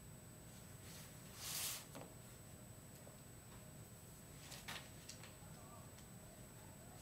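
Pages of a book rustle and flip.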